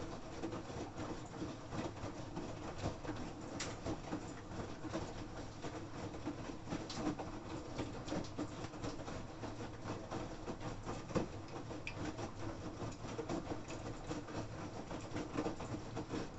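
A washing machine drum turns with a steady low rumble.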